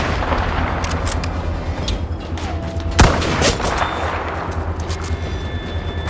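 A rifle bolt clacks as it is worked back and forth.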